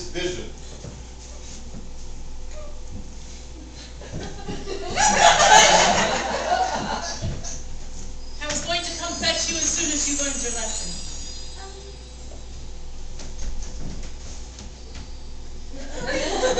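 A young man speaks loudly and theatrically in an echoing hall.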